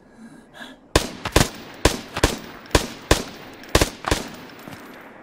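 A rifle fires several loud shots in quick succession.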